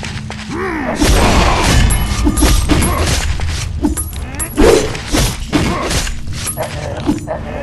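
Sword blows slash and clang in quick succession.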